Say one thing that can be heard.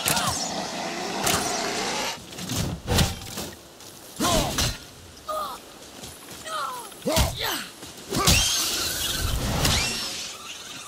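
Heavy blows and impacts thud during a fight.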